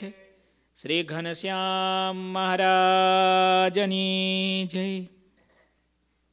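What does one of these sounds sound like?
A man chants a long sustained tone into a microphone, close by.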